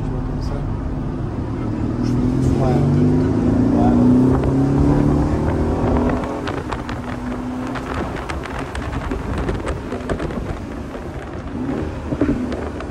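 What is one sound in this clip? Wind rushes past an open car.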